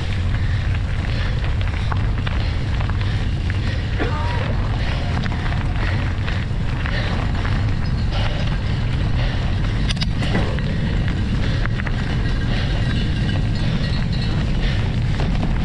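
Bicycle tyres roll and crunch over a leafy dirt track.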